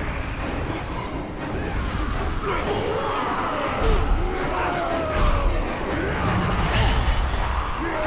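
Blades clash and strike with sharp hits.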